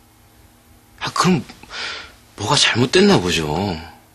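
Another young man answers calmly, close by.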